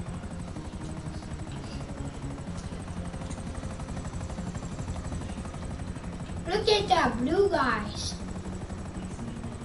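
A helicopter's rotor thumps steadily as it flies.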